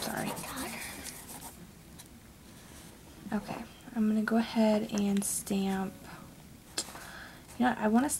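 Fingers tap and rub against a small metal plate.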